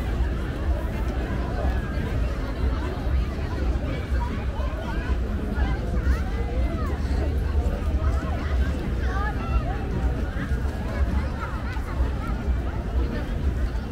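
A large crowd chatters and calls out outdoors.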